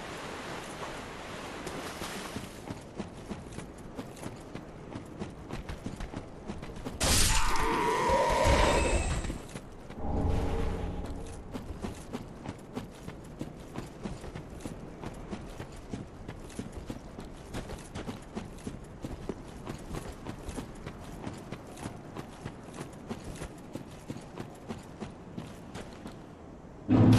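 Armoured footsteps clank in a quick, steady rhythm.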